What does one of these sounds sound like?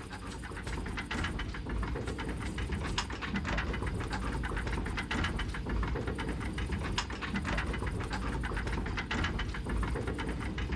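Fountains of water splash and gush steadily.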